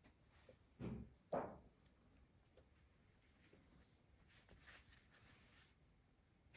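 Hands handle a soft toy with faint rustling and bumps.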